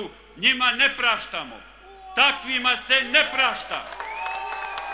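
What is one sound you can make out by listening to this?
A man speaks forcefully through a microphone and loudspeakers.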